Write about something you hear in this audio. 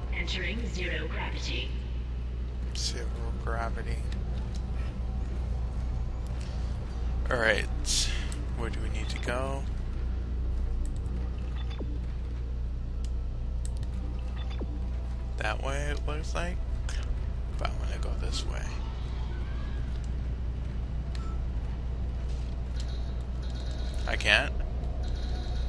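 A man talks into a microphone with animation, close by.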